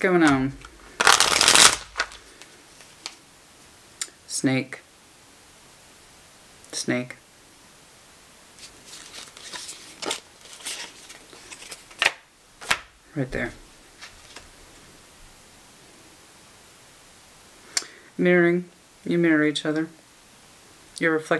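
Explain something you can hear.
Cards shuffle and riffle in a woman's hands.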